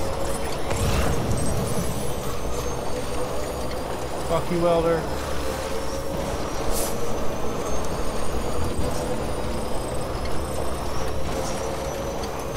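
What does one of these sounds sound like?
A heavy vehicle engine rumbles steadily.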